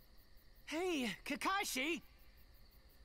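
A young boy shouts excitedly.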